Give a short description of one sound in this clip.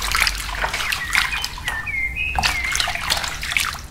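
Water trickles and splashes onto soil.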